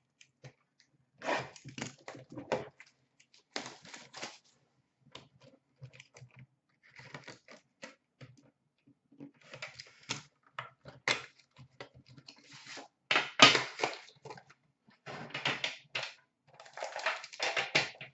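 Hands handle cardboard boxes, which tap and scrape.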